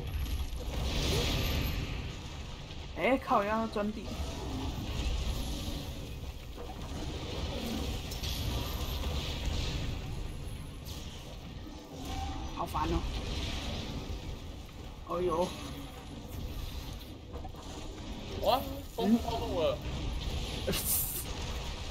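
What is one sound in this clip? Fiery explosions rumble and roar.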